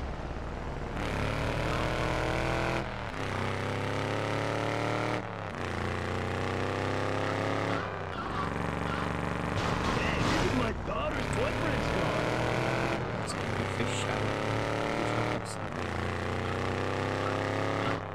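A car engine revs up and down repeatedly as it accelerates.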